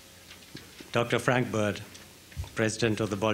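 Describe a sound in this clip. An older man speaks slowly into a microphone.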